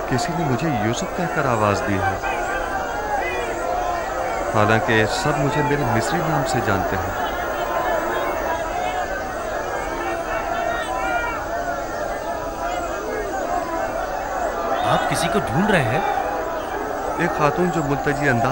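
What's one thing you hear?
A crowd of women and men cries out and wails loudly all around.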